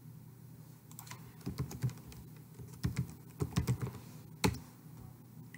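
Keys clatter briefly on a keyboard.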